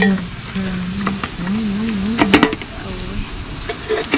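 A metal spoon clinks against a pot lid.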